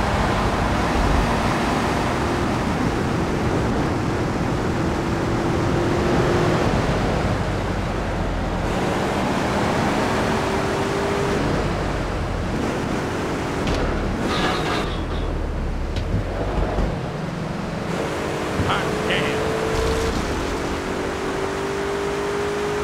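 Tyres hiss over snowy road.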